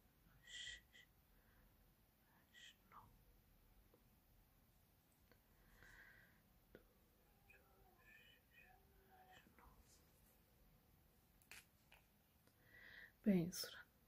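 Tiny glass beads click softly as a needle picks them up and slides them onto a thread.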